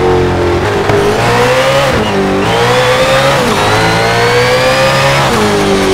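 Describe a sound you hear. A racing car engine revs hard, rising in pitch and dropping with each gear change.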